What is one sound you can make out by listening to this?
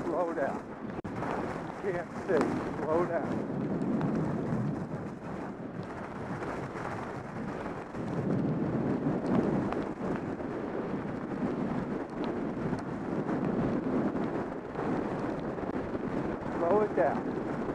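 Skis scrape and hiss steadily over packed snow.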